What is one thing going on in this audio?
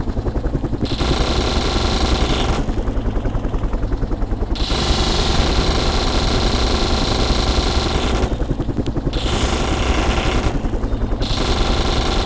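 Machine gun fire rattles in rapid bursts.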